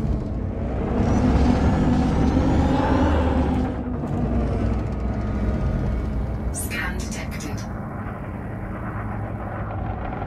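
A spaceship engine hums with a deep, steady rumble.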